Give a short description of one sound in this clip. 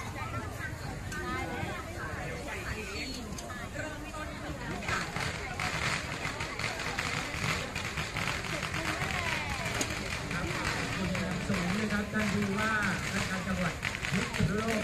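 A crowd of people chatters loudly outdoors.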